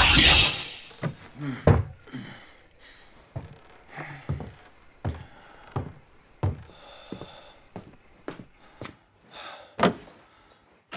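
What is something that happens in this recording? Footsteps thud slowly across a wooden floor.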